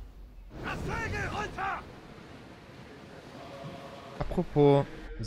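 Waves splash and rush against a sailing ship's hull.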